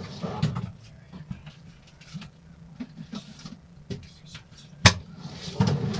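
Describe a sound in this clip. A plastic lid thuds shut.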